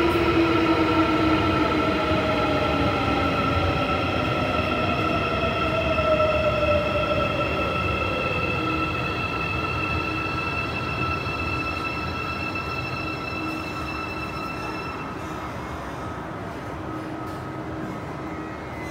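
A subway train rumbles past behind platform doors, its motor whining down in pitch as it slows.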